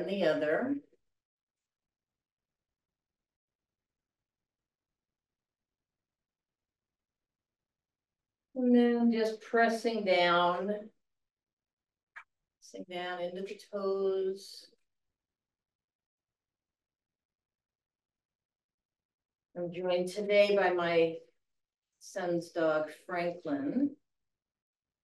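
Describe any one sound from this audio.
An elderly woman speaks calmly through a microphone.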